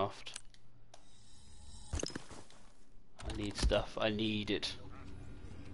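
A game menu clicks and chimes.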